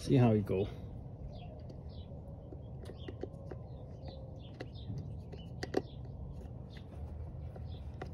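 Small plastic parts click as hands work them.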